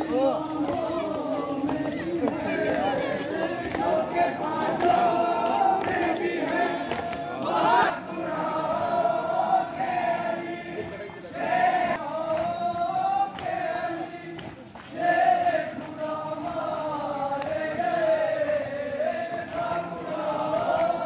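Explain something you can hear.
A crowd of men chants loudly in unison outdoors.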